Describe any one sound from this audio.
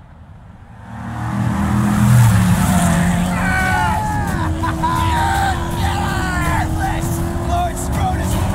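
Vehicle engines roar loudly.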